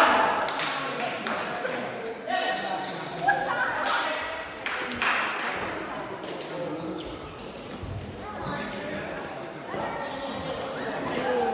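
Men and women chatter and call out across a large echoing hall.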